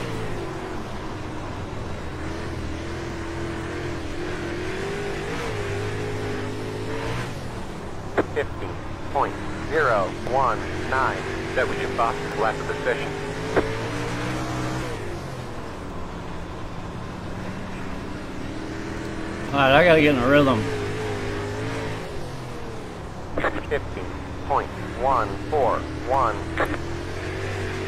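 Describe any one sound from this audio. A racing car engine drones steadily, rising and falling with speed.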